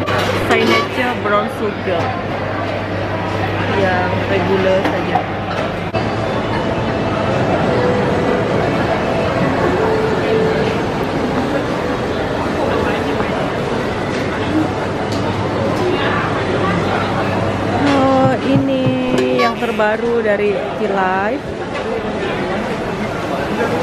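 A crowd murmurs in a large busy hall.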